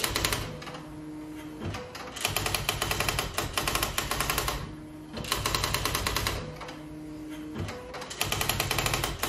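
An electric typewriter prints in rapid clattering bursts.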